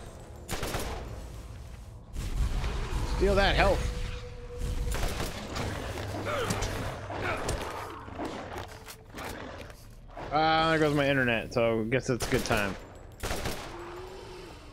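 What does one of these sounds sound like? Gunshots fire rapidly in bursts.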